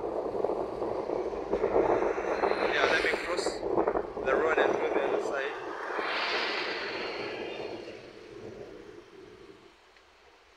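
Traffic rumbles along a busy road outdoors.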